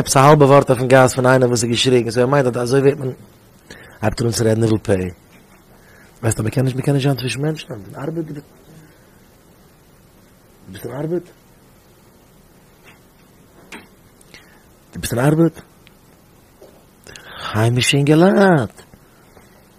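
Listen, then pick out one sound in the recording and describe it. A man speaks with animation into a close microphone, pausing often.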